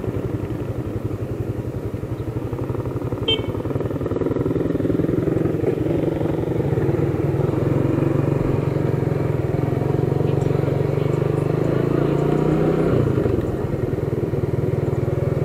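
A motorcycle engine idles with a fast, low throb, then revs up as the motorcycle rides off.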